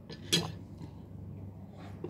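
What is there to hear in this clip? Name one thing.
A woman slurps from a bowl.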